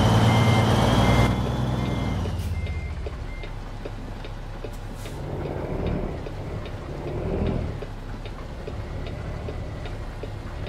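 A truck engine idles with a deep, steady rumble.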